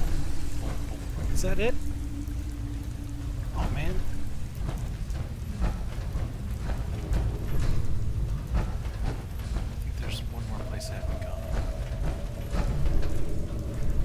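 Heavy metal footsteps clank steadily on a hard floor.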